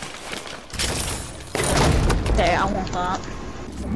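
A treasure chest opens with a shimmering chime.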